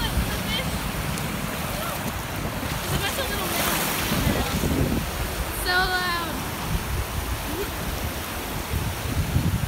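Shallow waves wash and fizz over sand close by.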